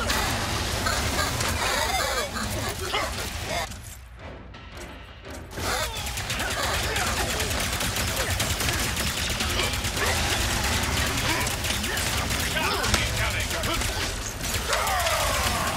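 Laser weapons fire and crackle rapidly.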